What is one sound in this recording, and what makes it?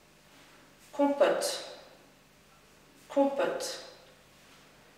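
A woman close by says a single word slowly and clearly, twice.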